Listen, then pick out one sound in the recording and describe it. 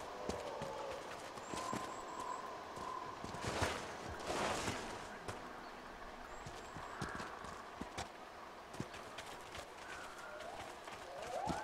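Footsteps crunch over grass and earth.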